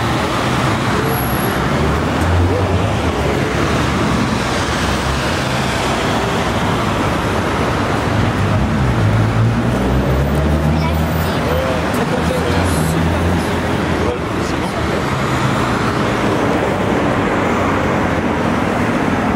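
Traffic hums steadily in the distance.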